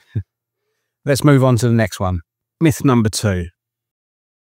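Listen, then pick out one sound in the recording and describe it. A middle-aged man talks calmly and close to a microphone.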